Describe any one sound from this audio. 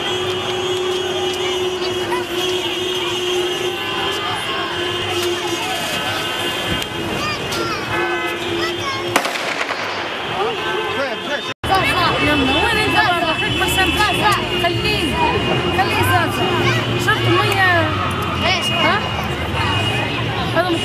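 Children chatter and call out nearby.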